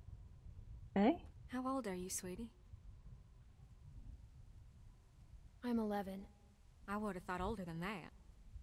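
A woman speaks calmly and quietly, in short phrases.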